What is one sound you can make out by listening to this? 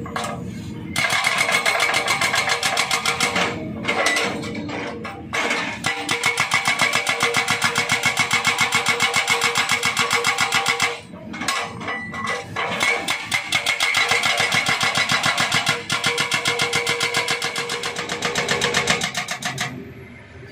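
A hydraulic breaker hammers rapidly against rock.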